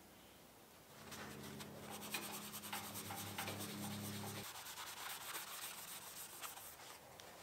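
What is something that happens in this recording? A cloth rubs against a metal plate.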